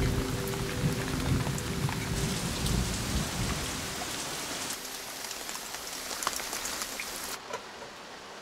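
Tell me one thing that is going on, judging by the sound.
Rain falls steadily on leaves.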